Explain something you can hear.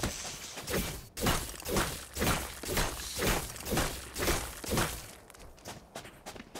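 Quick footsteps patter on sandy ground.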